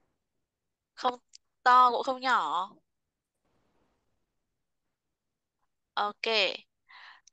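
A woman speaks slowly and clearly through an online call, with pauses.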